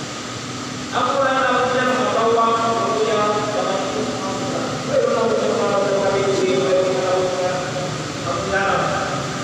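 An elderly man speaks calmly into a microphone, heard through loudspeakers in an echoing hall.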